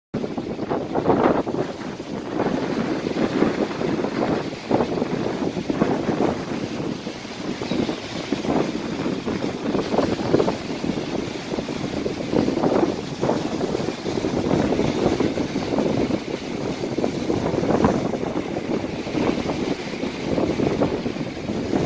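Strong wind blows outdoors.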